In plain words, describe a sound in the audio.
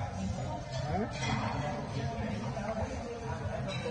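Cutlery clinks and scrapes on a plate.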